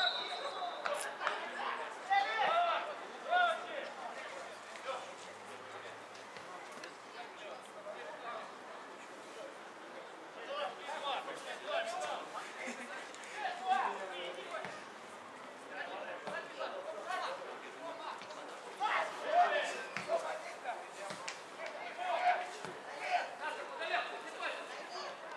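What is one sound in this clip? Men shout and call to each other across an open outdoor field.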